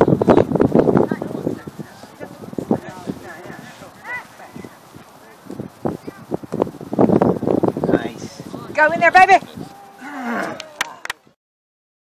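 Children shout and call out on an open field outdoors.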